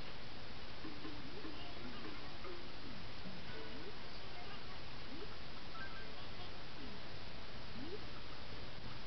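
Cheerful video game blips and chirps play from a television speaker.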